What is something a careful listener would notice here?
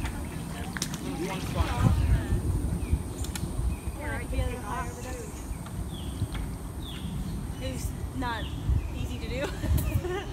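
A young woman talks nearby in a lively voice.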